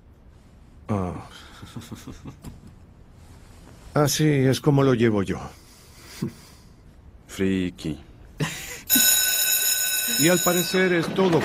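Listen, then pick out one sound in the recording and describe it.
An elderly man speaks clearly and deliberately, close by.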